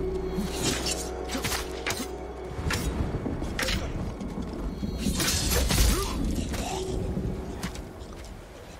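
Swords clash and slash sharply in a fight.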